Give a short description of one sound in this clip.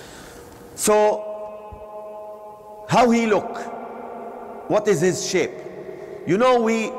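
A man chants in a drawn-out, melodic voice through a loudspeaker, echoing in a large hall.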